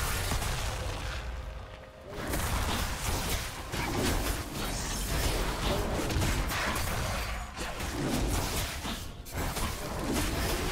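Spell effects whoosh and crash during a fast video game battle.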